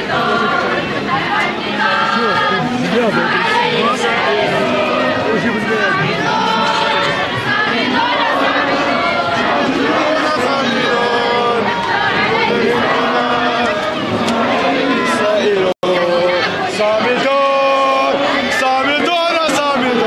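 A large crowd of men chants loudly in unison outdoors.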